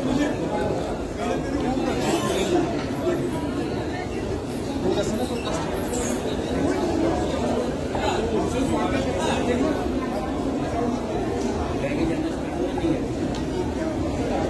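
A crowd of men and women chatter close by in an echoing hall.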